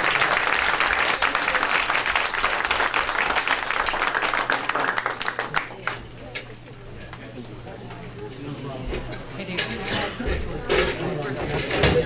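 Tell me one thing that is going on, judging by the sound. A crowd of young people chatter loudly in a room, then quiet down.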